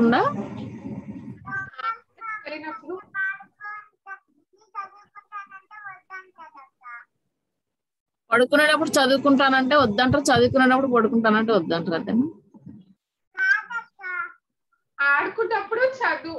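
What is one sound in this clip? A young girl talks over an online call.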